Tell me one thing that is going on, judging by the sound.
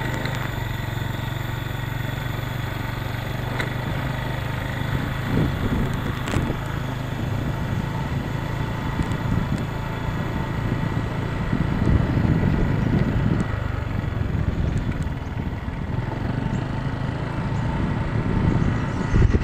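Wind rumbles against a moving vehicle.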